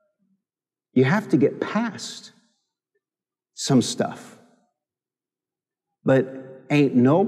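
A middle-aged man speaks with animation through a microphone, with pauses between phrases.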